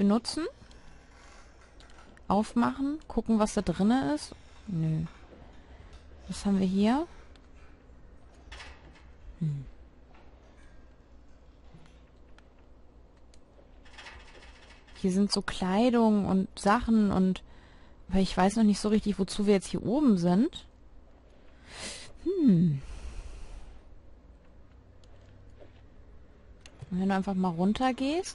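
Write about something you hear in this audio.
A young woman talks with animation into a close microphone, in bursts.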